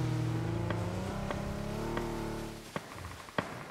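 A car engine hums steadily, then cuts out.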